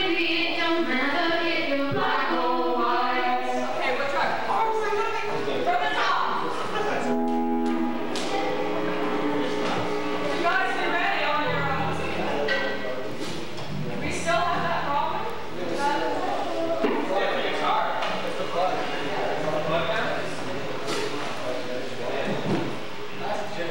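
A young boy sings into a microphone.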